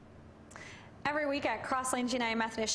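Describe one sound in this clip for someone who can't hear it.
A woman speaks clearly into a microphone.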